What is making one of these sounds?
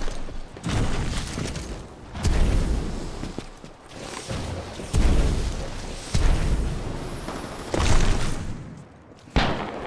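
Heavy booms and thumps sound in bursts from a video game.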